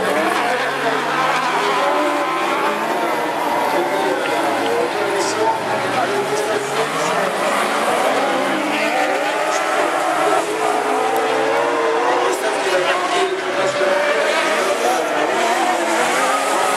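Racing car engines roar and rev loudly outdoors.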